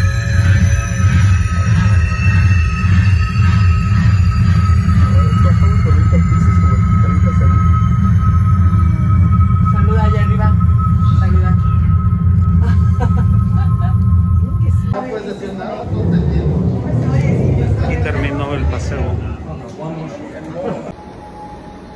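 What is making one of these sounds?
A crowd of people chatters close by.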